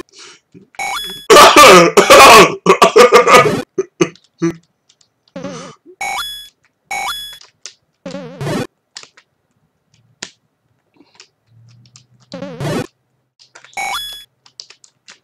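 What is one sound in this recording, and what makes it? Short electronic video game beeps chirp now and then.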